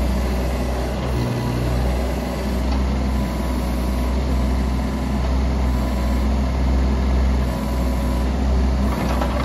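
Hydraulics whine as an excavator arm moves.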